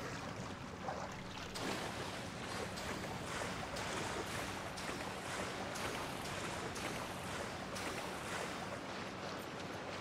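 Water splashes as a figure swims quickly.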